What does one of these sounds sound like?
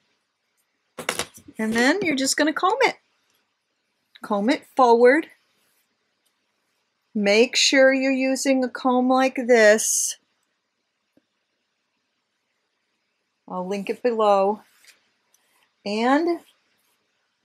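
An older woman talks calmly and close to a microphone, in short bursts with pauses.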